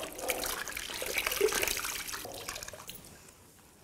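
Water drips and splashes from a wrung cloth into a bucket.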